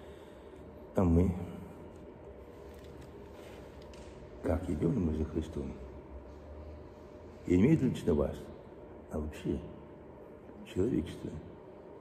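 An elderly man speaks calmly in short phrases, close to a microphone.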